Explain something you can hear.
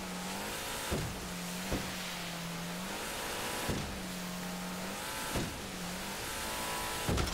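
A boat thumps hard against waves.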